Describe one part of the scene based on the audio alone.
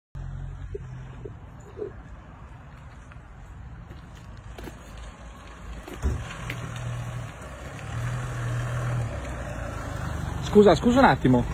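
A car engine hums steadily nearby as a car drives slowly closer.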